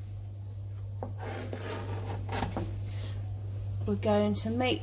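A knife knocks on a cutting board as it slices through a leek.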